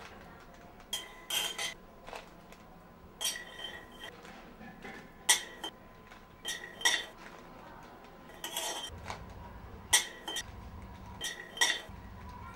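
Peanuts rattle and scrape in a metal pan as they are stirred.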